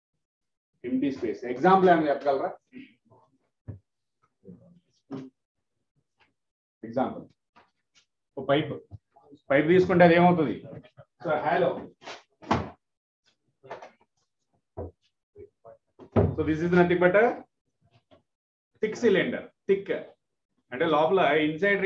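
A man speaks clearly and calmly into a close microphone, explaining in short bursts with pauses.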